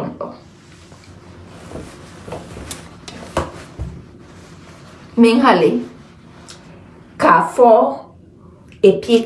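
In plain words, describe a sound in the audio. A woman speaks close to a phone microphone, in short emphatic bursts.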